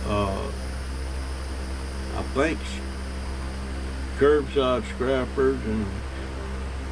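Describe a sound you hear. An elderly man speaks calmly and closely into a microphone, in short phrases.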